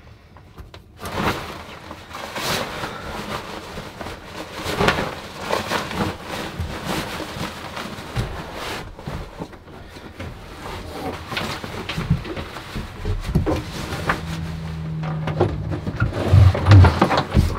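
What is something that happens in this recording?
Fabric rustles as a young man handles a sleeping bag and clothes.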